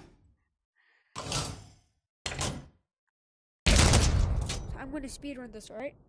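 Metal levers and cranks clank and rattle.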